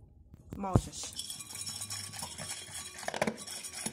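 A dog crunches and eats kibble from a bowl.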